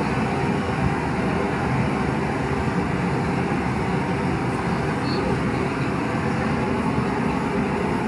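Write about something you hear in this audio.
A gas torch hisses and roars.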